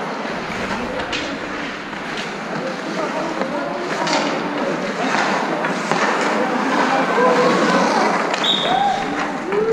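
Young players shout and call out in a large echoing rink.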